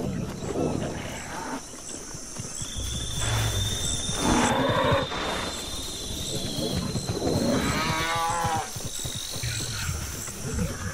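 Quick footsteps patter over gravel and grass.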